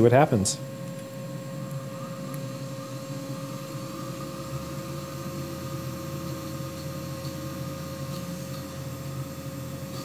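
Paper pages rustle as a binder is handled.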